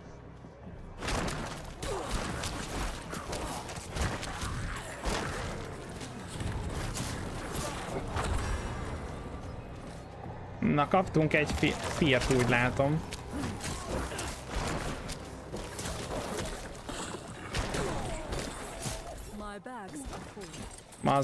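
Game combat sounds clash and thud.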